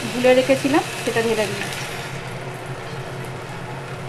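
Liquid is poured into a hot pan and sizzles.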